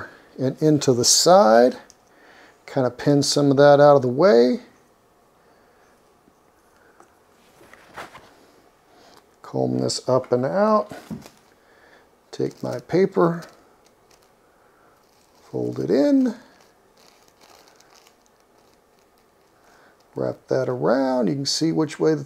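A man talks calmly and explains close by, in short bursts with pauses.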